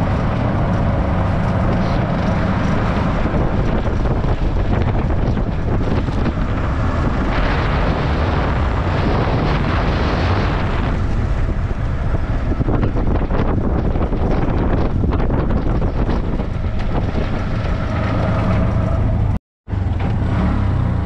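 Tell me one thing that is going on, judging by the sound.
Wind rushes past an open vehicle.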